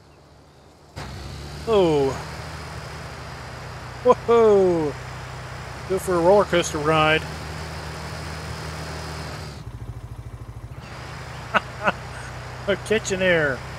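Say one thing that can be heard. A side-by-side utility vehicle's engine hums as it drives along a road.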